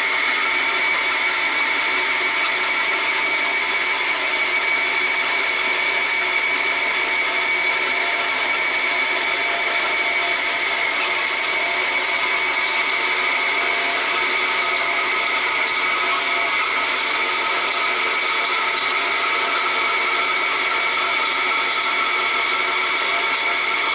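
A band saw whines steadily as it cuts through wood.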